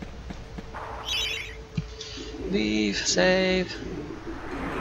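Electronic menu blips chime.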